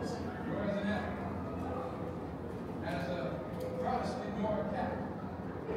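Adult men and women talk quietly in the distance.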